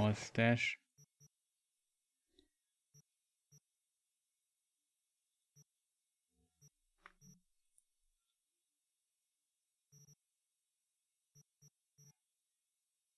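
Soft electronic menu clicks tick now and then.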